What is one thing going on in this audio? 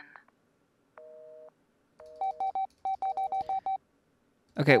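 A mobile phone beeps in short electronic tones.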